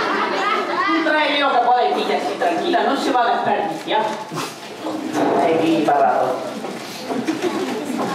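A woman speaks with animation on a stage.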